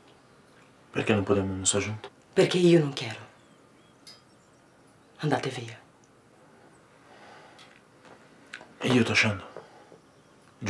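A man speaks in short, low, tense phrases close by.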